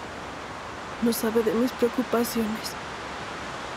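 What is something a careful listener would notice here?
A young woman speaks softly and pleadingly up close.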